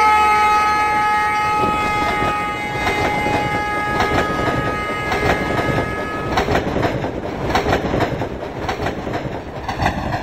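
A passing train rumbles close by.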